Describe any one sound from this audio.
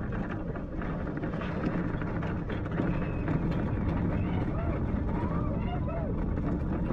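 Roller coaster cars rumble and rattle along the track.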